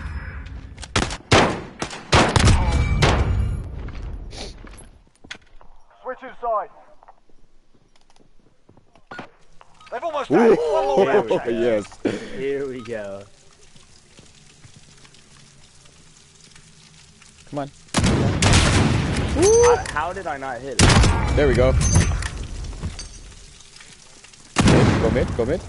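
Loud gunshots crack and boom.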